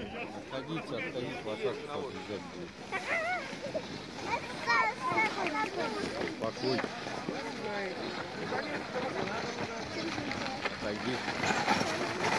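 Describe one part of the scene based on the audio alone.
Sleigh runners hiss over snow.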